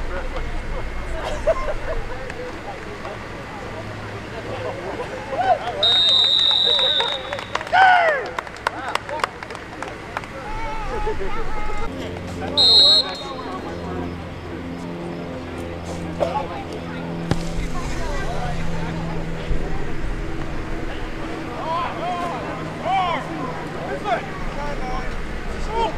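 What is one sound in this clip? Players shout and call out across an open field.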